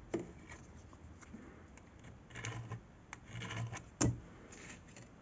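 Plastic film crinkles and rustles as fingers peel it off.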